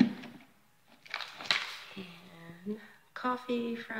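A plastic coffee bag crinkles as a hand handles it.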